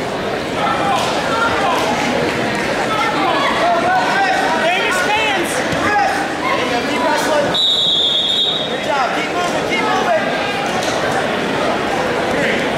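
A large crowd shouts and cheers in an echoing gym.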